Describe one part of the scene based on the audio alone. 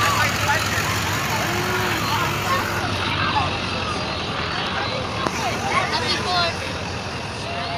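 A truck engine rumbles slowly past.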